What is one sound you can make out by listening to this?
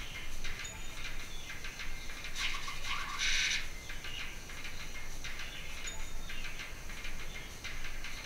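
Cartoonish game sound effects chirp and pop from a small phone speaker.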